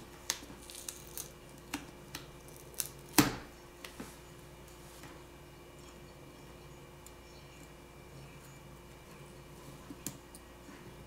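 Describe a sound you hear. Small plastic parts click and snap as fingers pry at a phone's edge.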